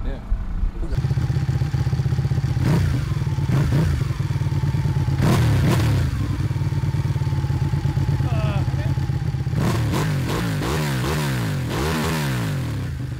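A motorcycle engine idles and then revs up.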